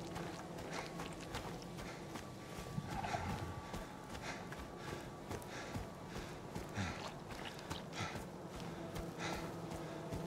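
Footsteps crunch on leaves and dirt at a steady walking pace.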